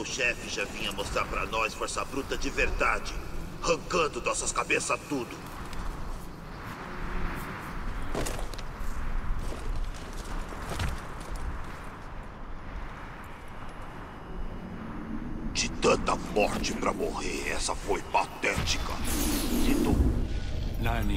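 A middle-aged man talks with animation into a microphone.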